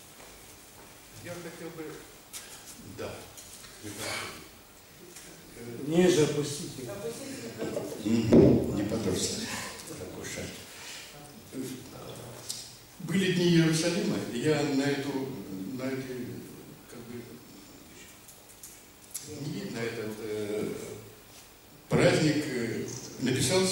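An elderly man reads aloud into a microphone, heard through loudspeakers in an echoing hall.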